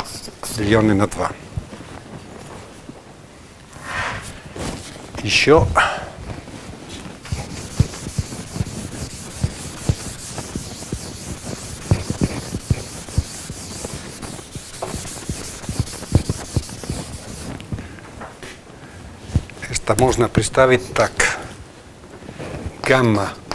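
An older man speaks in a lecture, heard in an echoing room.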